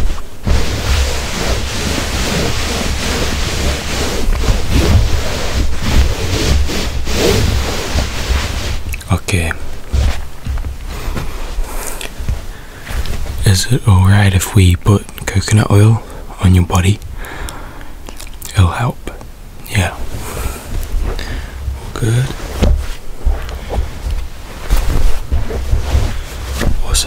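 Hands rub and smooth a thick blanket, rustling.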